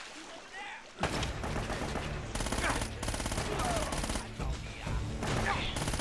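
Gunshots fire in rapid bursts and echo around a large stone hall.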